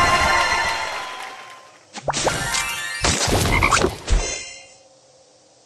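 Bubbles pop with bright, chiming game effects.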